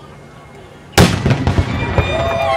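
A black powder charge blasts an anvil into the air with a deep boom outdoors.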